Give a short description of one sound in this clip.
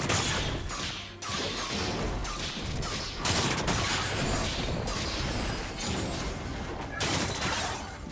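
Game spell effects crackle and whoosh in a fight.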